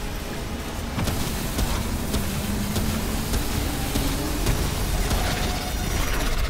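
An electric weapon crackles and zaps in rapid bursts.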